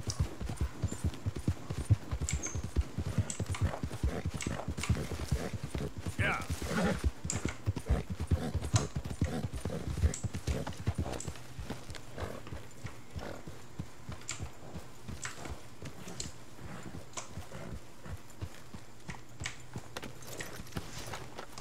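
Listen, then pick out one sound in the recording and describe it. A horse's hooves thud steadily on soft ground, then slow and quieten.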